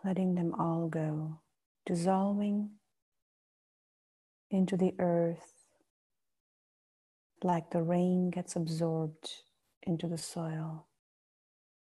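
A woman speaks slowly and calmly in short phrases, close to the microphone.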